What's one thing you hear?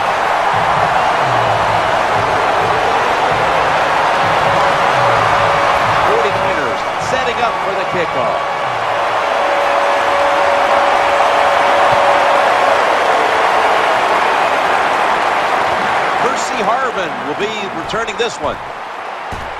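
A large stadium crowd roars steadily, then quiets.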